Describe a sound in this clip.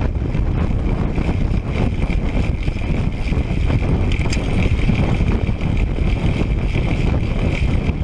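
Wind roars steadily across a microphone while riding fast outdoors.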